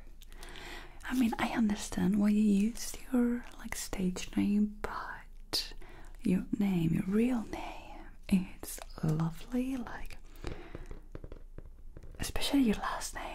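A young woman speaks softly and closely into a microphone.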